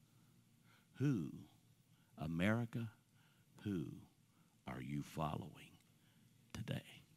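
An older man speaks slowly and calmly into a microphone, with pauses.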